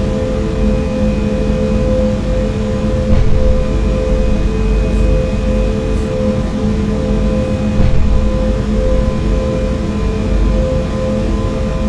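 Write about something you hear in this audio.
A train's electric motor hums steadily as it runs at speed.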